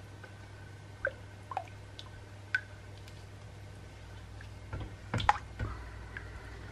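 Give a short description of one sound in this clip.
A spatula scrapes and taps against the side of a metal pot.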